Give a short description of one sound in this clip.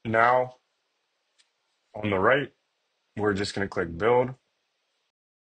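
A young man speaks calmly and closely into a microphone, in short bursts.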